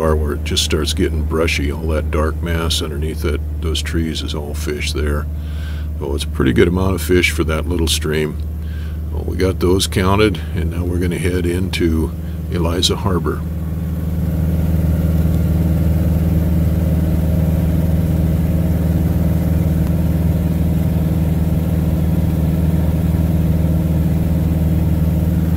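A small plane's engine drones steadily from inside the cabin.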